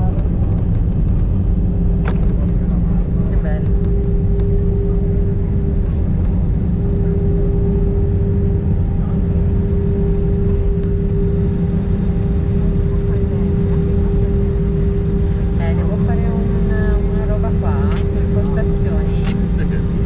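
Wheels rumble over a runway as an aircraft rolls along.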